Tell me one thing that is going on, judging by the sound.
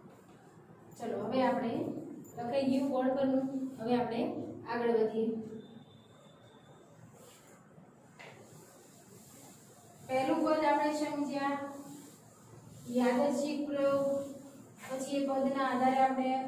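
A woman speaks clearly and calmly, close to a microphone.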